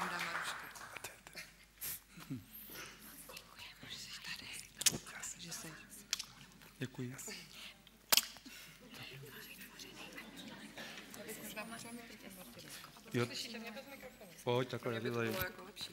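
Several people talk quietly to one another at a distance.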